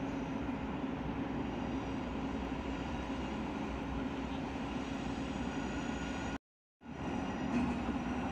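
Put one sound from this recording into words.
A diesel locomotive rumbles as it slowly approaches.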